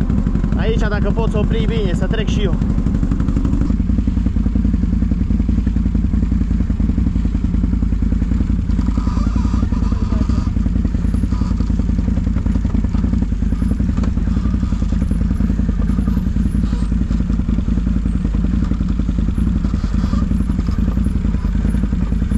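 A quad bike engine rumbles steadily up close.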